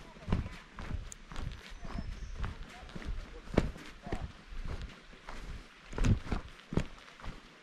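Footsteps crunch on a dirt trail at a steady walking pace.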